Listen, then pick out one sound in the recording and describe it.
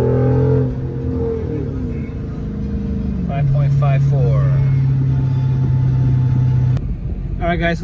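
A car engine hums and revs while driving.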